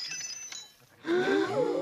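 Several cartoonish male voices gasp and shout together.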